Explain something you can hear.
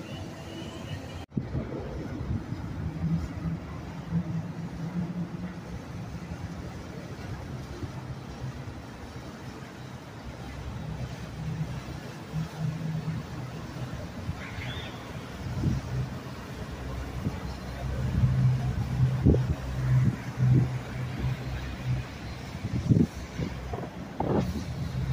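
Water swishes and splashes against a boat's hull.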